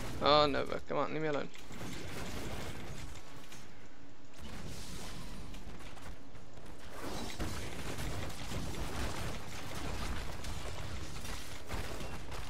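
Spell blasts and weapon strikes crackle and thud in a busy fight.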